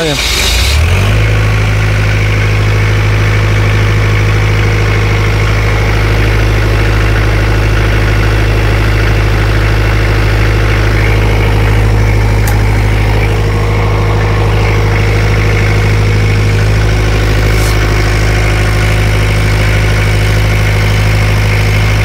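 A diesel generator engine runs with a steady, loud low drone.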